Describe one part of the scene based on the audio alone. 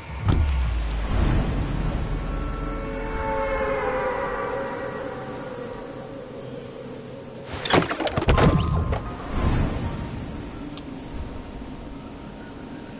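Rockets roar and streak overhead.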